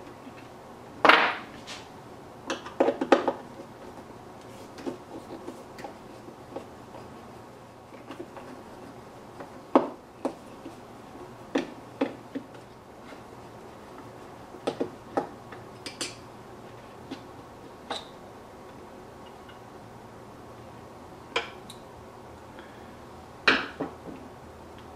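Small parts knock and clatter against a plastic casing.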